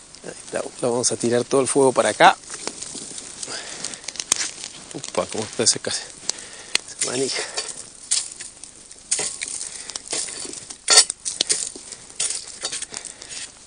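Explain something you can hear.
A wood fire crackles and pops.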